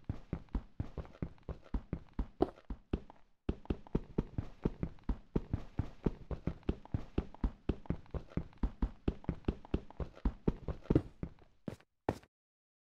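Rapid blocky footsteps or digging thuds knock on stone in quick succession.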